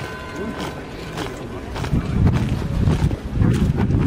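Boots of marching soldiers stamp in step on cobblestones.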